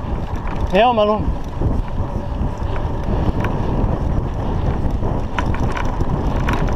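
Bicycle tyres rumble over a bumpy dirt track.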